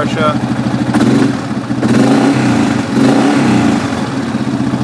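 An engine revs up briefly and settles back.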